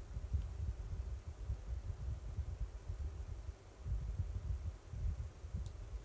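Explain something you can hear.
Small objects are handled close to the microphone, with soft low bumps and rustles.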